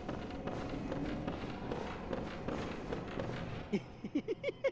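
Footsteps tread on a hard stone floor.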